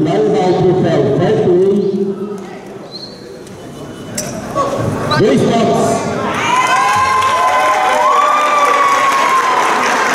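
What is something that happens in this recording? A young man speaks into a microphone, heard through loudspeakers in a large echoing hall.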